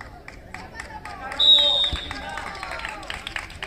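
Young players shout to each other across the field.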